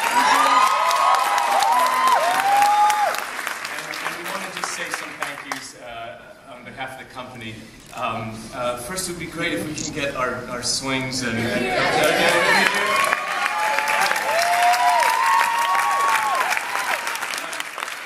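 An audience cheers with high shrill screams.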